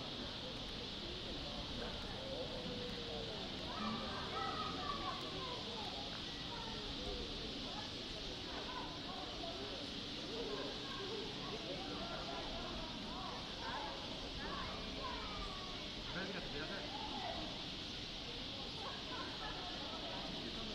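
Birds chirp and twitter nearby outdoors.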